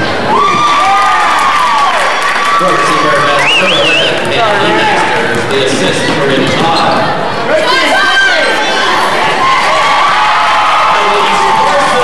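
A crowd cheers and shouts throughout a large echoing gym.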